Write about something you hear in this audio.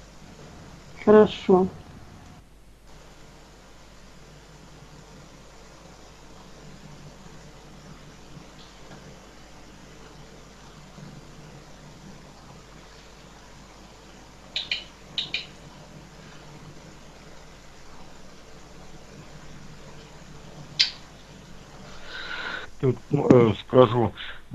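A man speaks briefly and calmly into a microphone, with long pauses.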